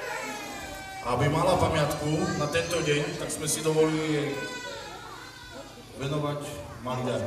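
A man speaks loudly into a microphone over loudspeakers.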